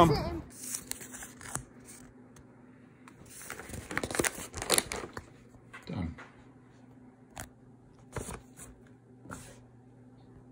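Paper rustles and crackles as a card is handled.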